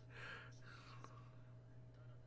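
A young man laughs softly close to a microphone.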